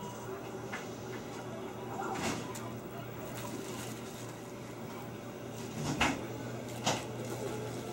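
A cat bats a small toy across a hard floor with soft knocks and scrapes.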